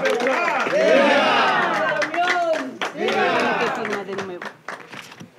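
A crowd of men and women chant loudly together.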